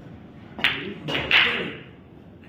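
Billiard balls clack against each other.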